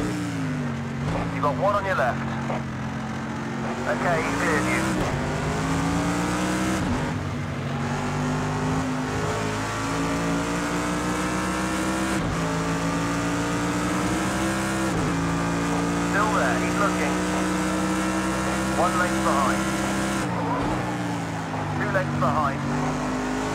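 Tyres squeal through corners.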